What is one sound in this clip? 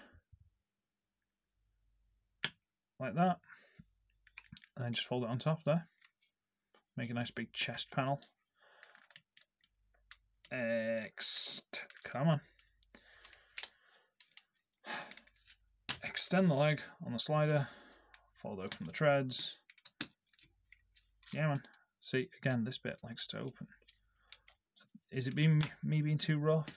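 Plastic parts click and snap as a toy figure is twisted into shape.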